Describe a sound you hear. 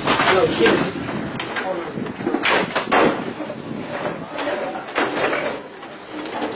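Several men talk loudly and excitedly close by.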